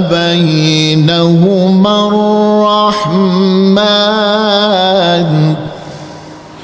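A middle-aged man chants a long melodic recitation into a microphone, his voice rising and wavering.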